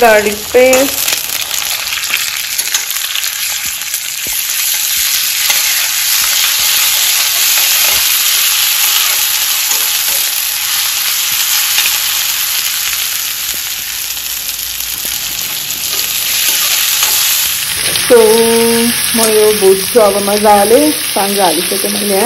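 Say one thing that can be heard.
Onions sizzle and hiss as they fry in a hot pan.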